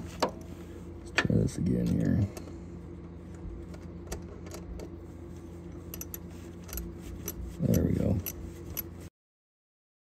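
A plastic connector clicks and rattles.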